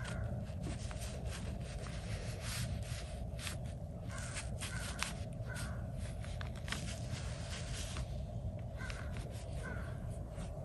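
A brush dabs and brushes softly on paper.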